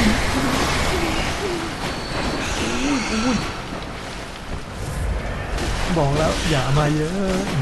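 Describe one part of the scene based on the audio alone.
A blade slashes and thuds into flesh.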